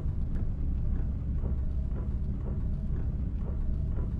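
Windshield wipers swish back and forth.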